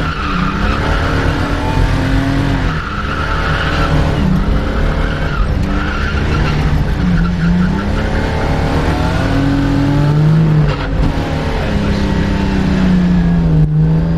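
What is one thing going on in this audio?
A car engine roars loudly, revving up and down.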